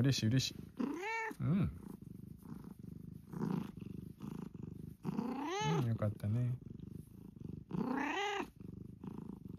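A cat meows loudly several times.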